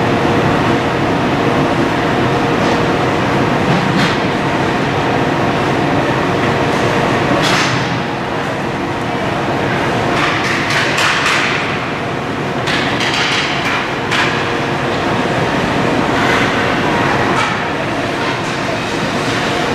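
A crowd chatters and cheers in a large echoing rink.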